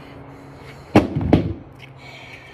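Dumbbells thud down onto hard ground.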